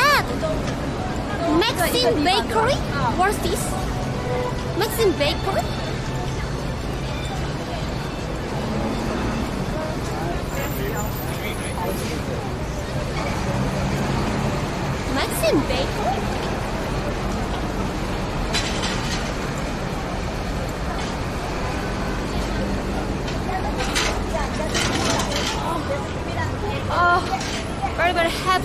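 City street noise and traffic hum steadily outdoors.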